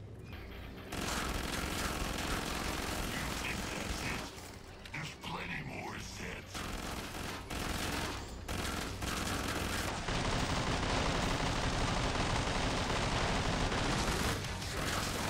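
A rifle fires rapid, loud shots.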